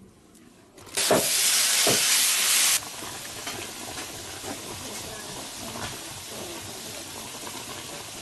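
Broth bubbles and simmers in a pot.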